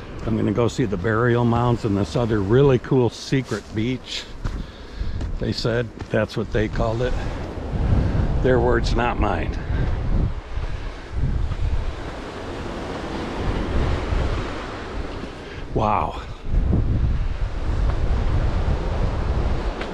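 Wind blows across an open hillside.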